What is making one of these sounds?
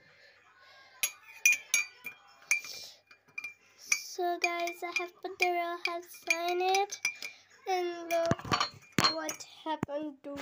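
A metal spoon clinks against a glass as it stirs.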